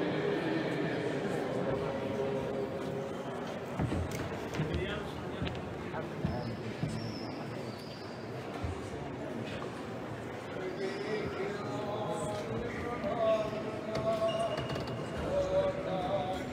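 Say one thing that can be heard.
A crowd of men and women murmurs quietly in the background of a large echoing hall.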